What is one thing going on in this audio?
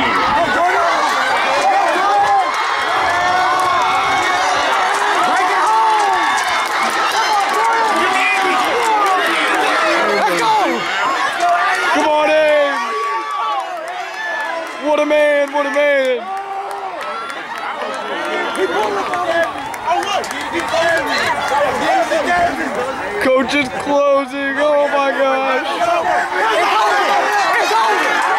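A crowd of young spectators cheers and screams loudly outdoors.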